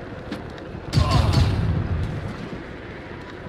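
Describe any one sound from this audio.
A silenced pistol fires with a dull thud.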